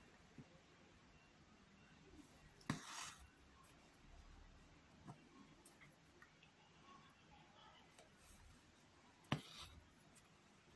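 Thread rasps as it is pulled through fabric.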